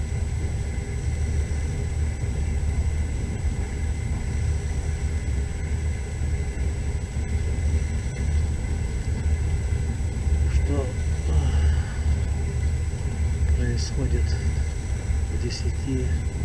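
Tyres rumble over a snowy road.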